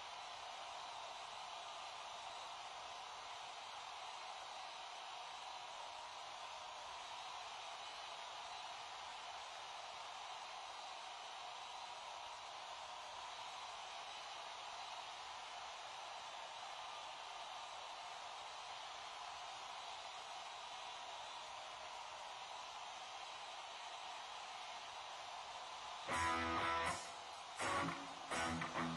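A large crowd cheers and applauds in a large arena.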